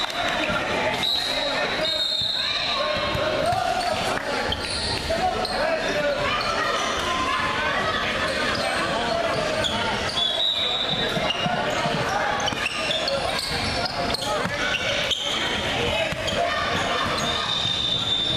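Voices of young players and spectators echo in a large hall.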